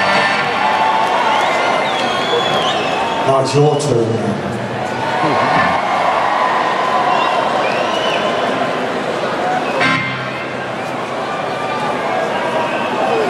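A band plays live music loudly in a large echoing arena.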